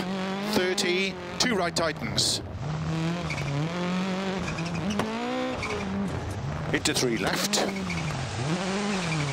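A rally car engine revs hard, rising and falling as the gears change.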